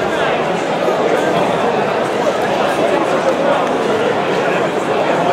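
A crowd talks and cheers loudly in a large echoing hall.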